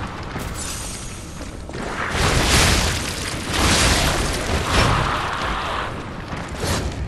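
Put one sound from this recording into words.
Electricity crackles and fizzes in loud bursts.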